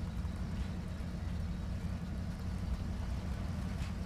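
Water splashes against a truck as it drives through a stream.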